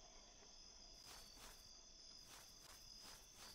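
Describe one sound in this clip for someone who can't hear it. Footsteps tap softly on the ground.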